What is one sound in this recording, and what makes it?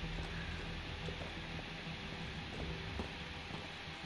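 Footsteps scuff slowly on a hard floor.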